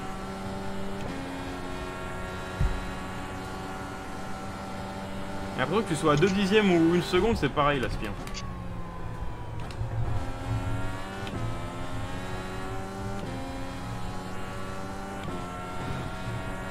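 A racing car engine whines steadily, rising and dropping in pitch as gears shift.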